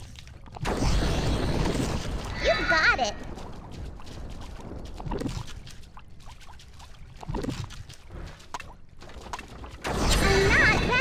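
Magic spells burst and whoosh in a fantasy battle.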